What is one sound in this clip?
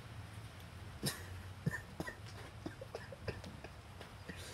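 A cat knocks against a shoe on the boards.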